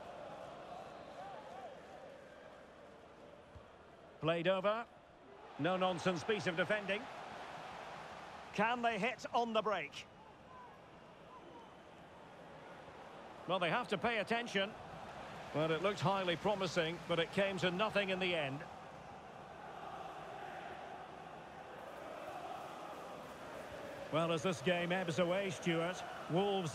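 A stadium crowd murmurs and cheers steadily in the distance.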